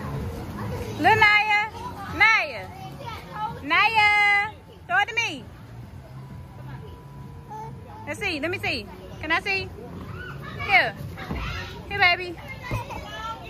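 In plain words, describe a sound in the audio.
A small girl babbles and squeals close by.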